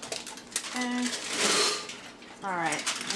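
A handful of almonds pours rattling into a blender jar.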